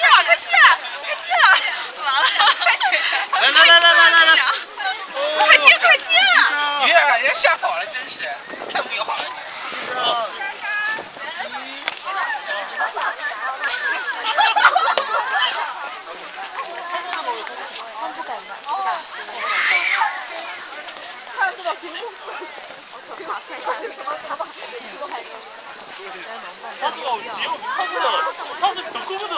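A crowd of adults and children chatter outdoors.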